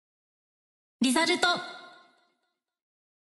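A short, bright electronic game jingle sounds.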